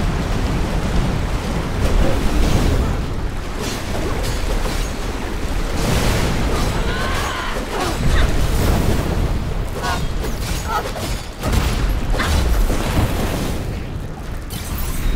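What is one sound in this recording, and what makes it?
Swords clash and slash rapidly in a fight.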